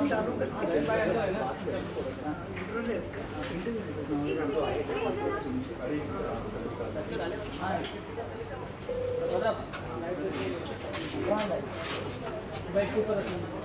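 A young woman talks animatedly close by.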